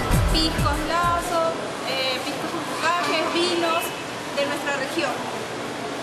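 A young woman speaks with animation close by.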